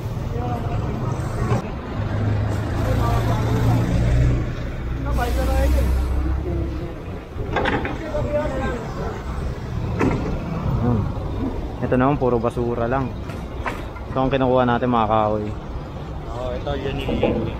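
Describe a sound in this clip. Traffic rumbles in the street.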